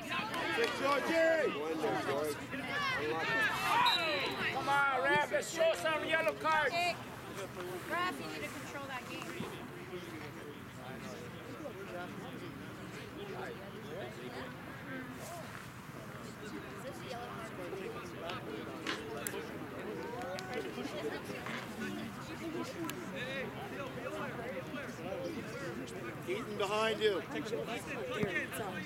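Young players call out to each other across an open field.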